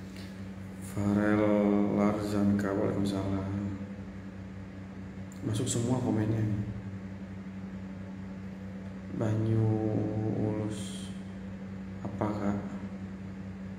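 A young man talks calmly and close by, in short bursts.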